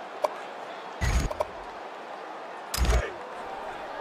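Menu selection sounds click sharply.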